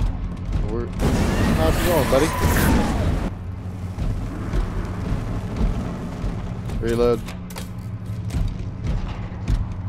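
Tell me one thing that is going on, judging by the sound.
A flamethrower roars in bursts of fire.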